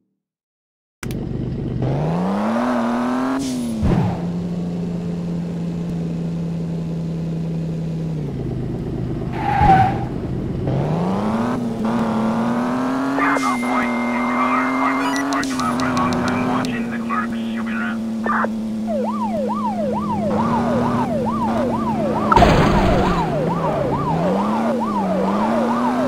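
A car engine revs and hums as it speeds up and slows down.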